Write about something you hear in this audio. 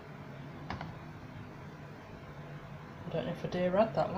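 A ceramic pot is set down on a wooden shelf.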